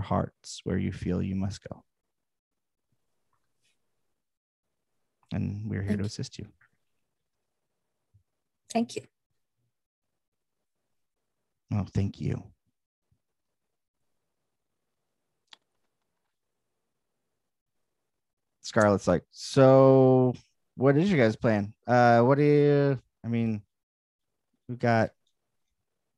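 A man speaks through a headset microphone in short bursts, over an online call.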